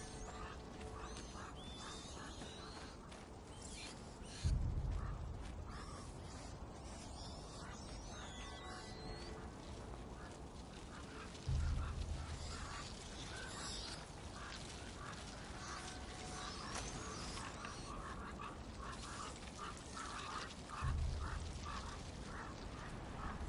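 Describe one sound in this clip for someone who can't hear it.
Footsteps crunch softly on stone and dirt at a steady walking pace.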